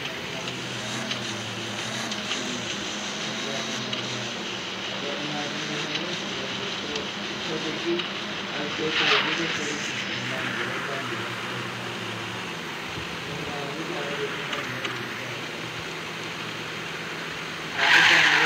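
A car engine hums and rises in pitch as the car speeds up.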